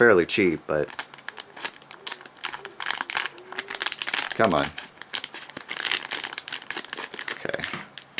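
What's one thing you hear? Scissors snip through a plastic wrapper.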